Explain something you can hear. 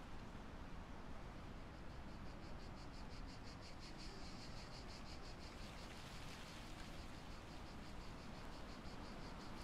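A handheld detector ticks rapidly and steadily.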